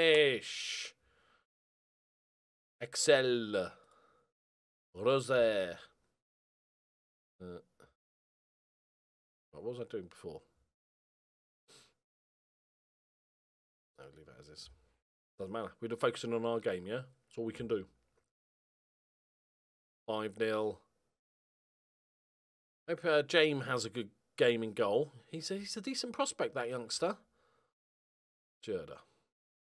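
A middle-aged man talks in bursts with animation, close to a microphone.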